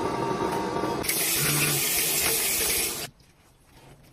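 Water runs from a tap onto hands.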